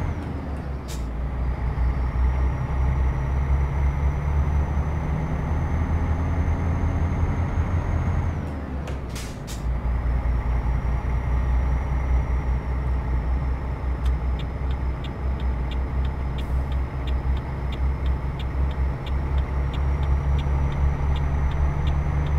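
A truck engine drones steadily, dropping briefly as the gear changes.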